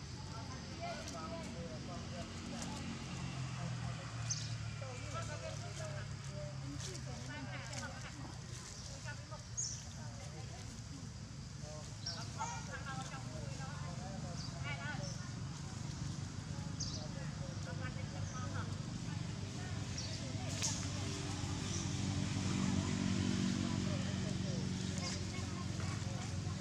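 A baby monkey squeaks and whimpers softly.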